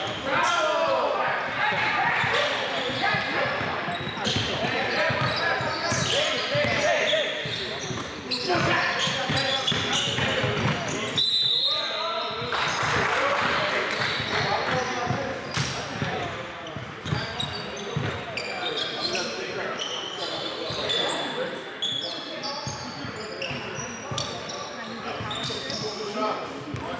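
A basketball bounces on a wooden court in a large echoing gym.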